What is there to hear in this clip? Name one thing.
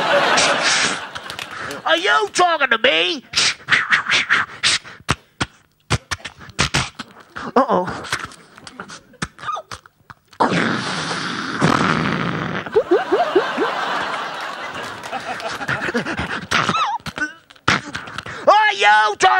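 A man beatboxes into a microphone, with quick clicks, thumps and hisses.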